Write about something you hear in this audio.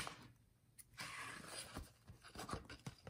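Paper rustles and crinkles as hands handle it.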